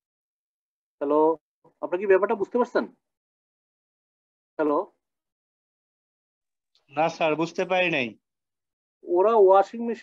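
A man speaks calmly in short phrases, heard through an online call.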